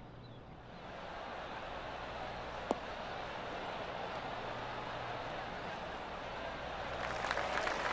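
A large crowd cheers and murmurs outdoors.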